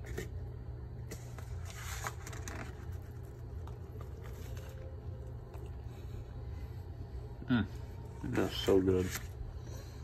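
A paper plate rustles and scrapes as it is handled.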